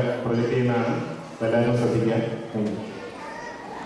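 A man speaks with animation through a microphone over loudspeakers in a large hall.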